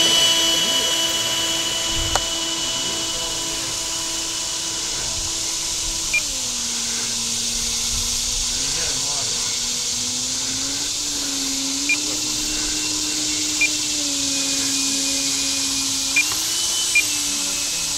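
A model jet engine whines and hisses steadily.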